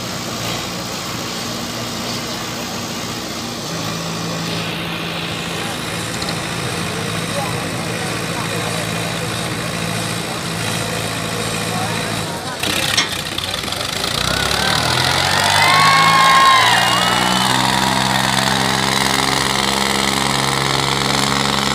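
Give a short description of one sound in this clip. Tractor engines rumble and strain loudly.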